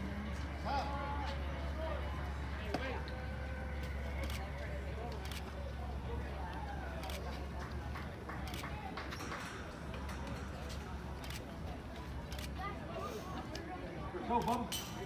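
Nearby adult spectators talk and call out outdoors.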